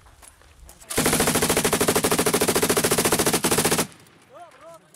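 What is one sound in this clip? A heavy machine gun fires a long, rapid burst close by.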